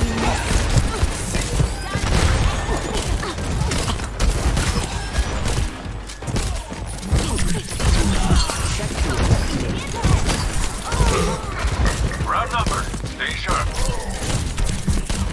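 Explosions and impacts boom and crack.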